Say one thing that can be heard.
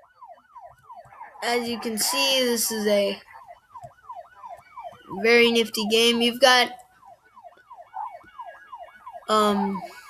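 A siren wails rapidly up and down.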